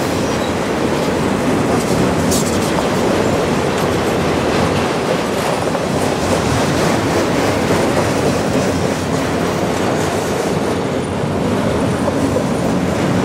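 A long freight train rumbles steadily past up close.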